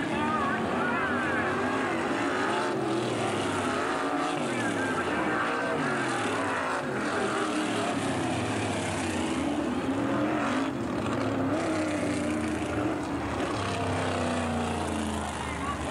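A crowd cheers outdoors.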